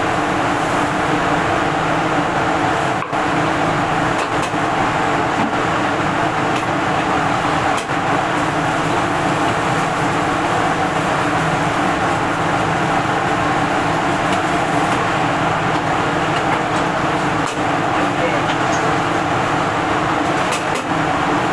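A gas burner roars steadily and loudly.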